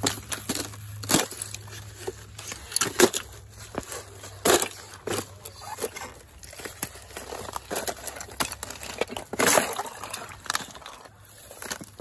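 Boots crunch and grind over broken glass.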